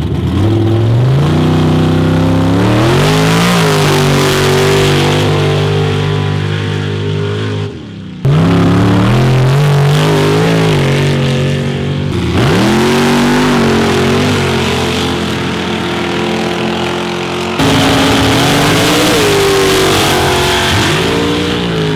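Truck engines roar loudly, revving up and down as they pull.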